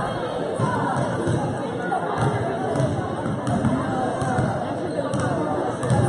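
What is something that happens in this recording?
A crowd of spectators chatters in a large echoing gym.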